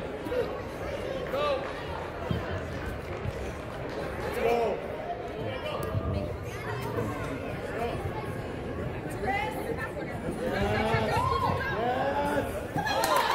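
Spectators cheer and shout in a large echoing hall.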